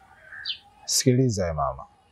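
A man speaks close by in a low voice.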